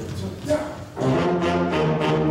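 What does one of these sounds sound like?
A big band of saxophones and brass starts playing loudly.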